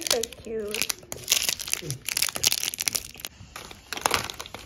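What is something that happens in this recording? Plastic wrappers crinkle in hands.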